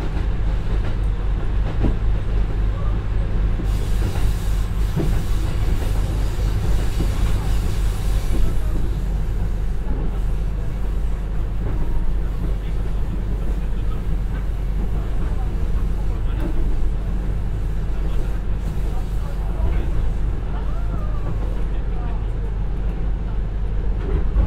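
A diesel engine rumbles steadily as a train runs along.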